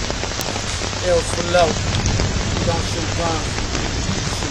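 A young man raps rhythmically, close by.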